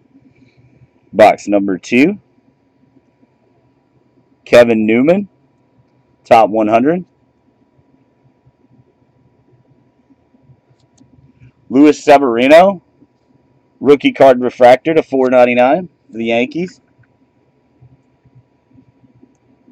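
Trading cards rustle and slide against each other as they are flipped through by hand.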